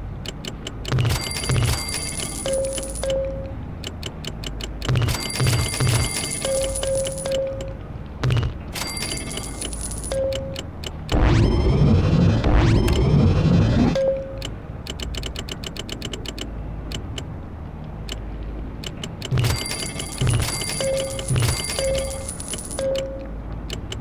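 Coins jingle in quick bursts as game items are sold.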